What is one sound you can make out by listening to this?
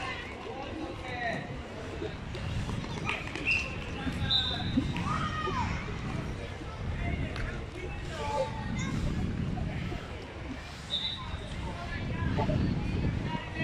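Children shout and call out across an open outdoor field.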